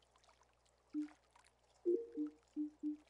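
Short electronic menu blips sound in quick succession.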